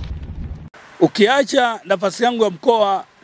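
A middle-aged man speaks with animation close to a microphone.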